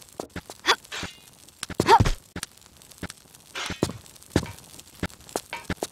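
Hands scrape and grip on stone while climbing a wall.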